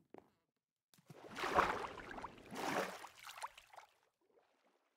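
Water splashes as something plunges in and swims.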